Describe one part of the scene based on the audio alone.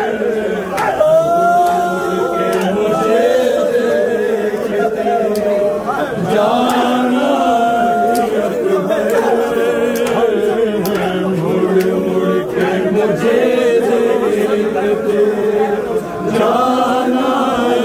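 A large crowd of men chants loudly together.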